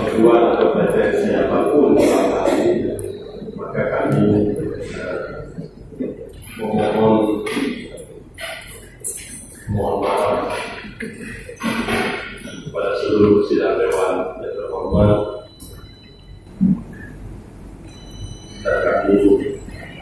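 A man gives a speech through a microphone and loudspeakers in a large echoing hall.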